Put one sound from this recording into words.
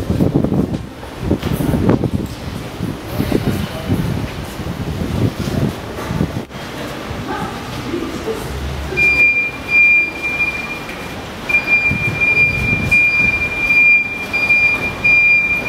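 Footsteps walk along a hard floor in an echoing passage.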